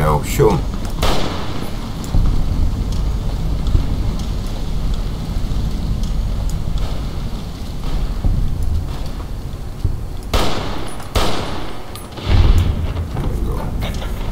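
A scoped rifle fires a shot.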